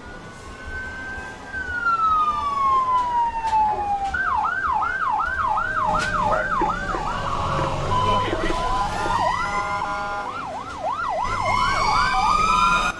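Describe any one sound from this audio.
Fire engine sirens wail and yelp, rising and falling quickly.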